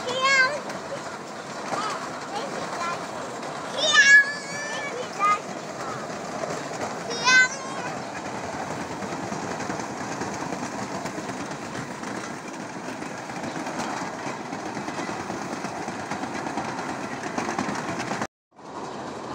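Children slide down a metal roller slide with a steady rumbling rattle.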